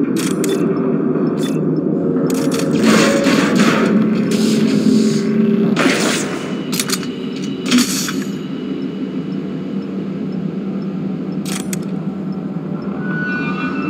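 A low mechanical hum drones steadily throughout.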